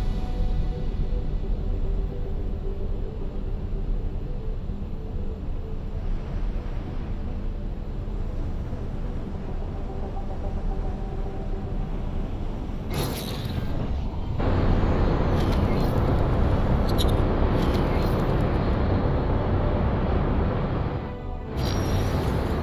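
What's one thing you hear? A spacecraft engine hums low and steadily, growing louder partway through.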